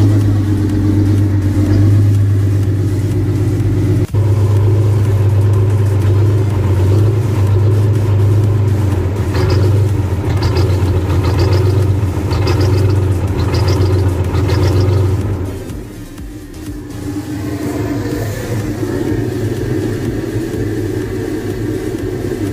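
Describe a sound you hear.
A tractor engine idles with a steady, low rumble.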